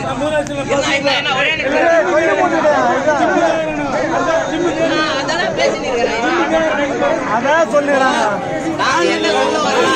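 Several men talk loudly over one another outdoors.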